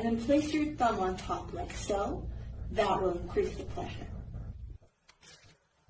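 A young woman talks in an upbeat, instructive way.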